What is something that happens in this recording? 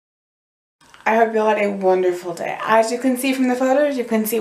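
A young woman talks with animation, close to the microphone.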